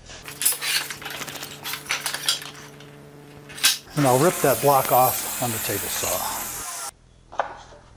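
A table saw cuts through wood.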